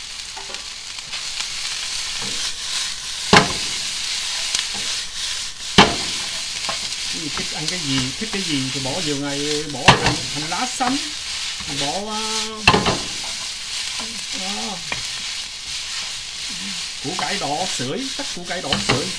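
Noodles and vegetables sizzle in a hot pan.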